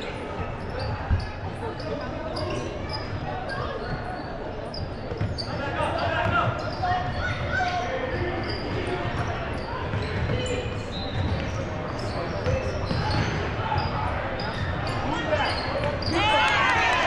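A ball bounces on a hard wooden floor.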